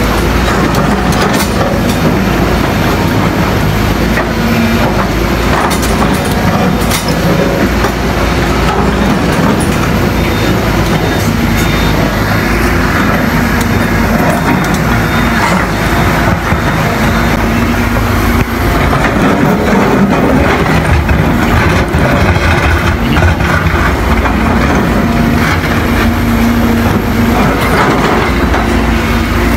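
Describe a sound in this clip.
An excavator bucket scrapes and grinds through rock.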